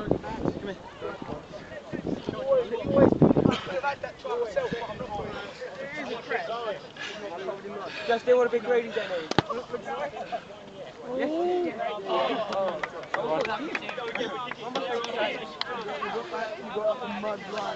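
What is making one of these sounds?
Teenage boys talk and shout together outdoors.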